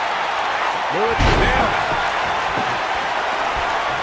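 A body slams heavily onto a wrestling ring mat with a deep thud.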